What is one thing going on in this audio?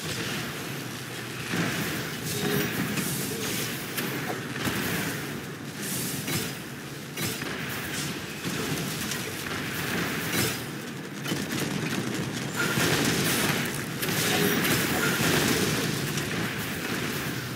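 Explosions boom and crackle in quick bursts.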